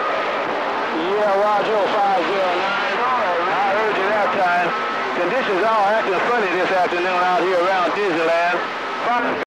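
A radio receiver gives out a warbling, wavering signal.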